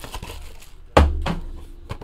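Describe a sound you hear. A cardboard box knocks against a table.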